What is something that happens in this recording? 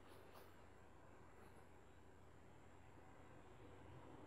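Metal tweezers click faintly against a small watch movement.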